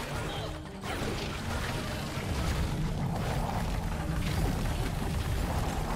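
Blades swish and clash in a fight.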